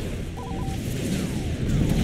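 An explosion booms and fire roars.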